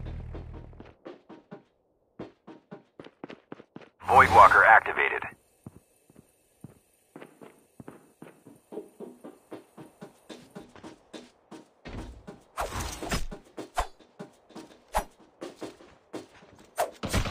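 Footsteps run quickly across hard floors.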